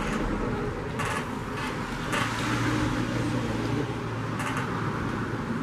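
Metal screws clink and rattle as a hand sorts through them.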